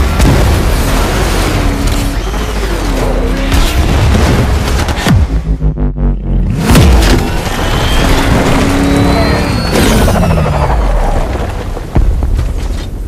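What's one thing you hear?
Explosions boom and debris crashes.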